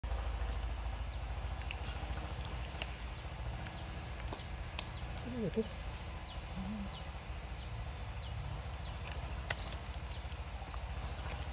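Wet mud squelches as hands dig into it.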